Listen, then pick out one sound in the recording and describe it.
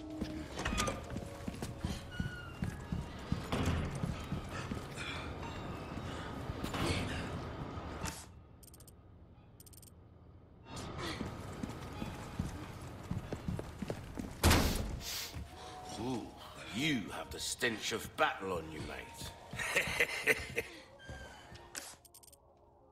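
Footsteps thud on a stone floor at a walking pace.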